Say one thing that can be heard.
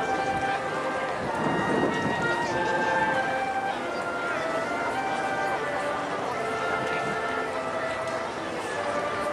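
A wind band plays a lively tune outdoors.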